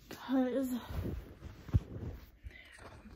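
A phone is handled with a thump and rustle.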